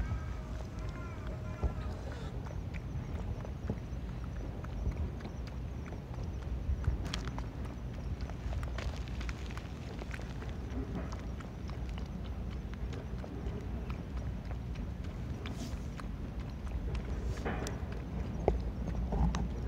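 A small animal laps water from a puddle with soft wet clicks.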